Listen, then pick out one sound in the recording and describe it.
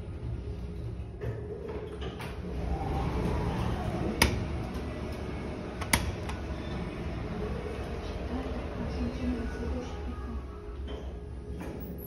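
Elevator doors slide open and shut.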